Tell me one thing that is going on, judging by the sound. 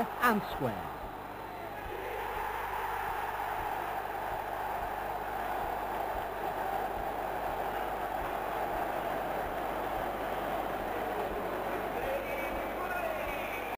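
A large crowd roars and cheers loudly in a stadium.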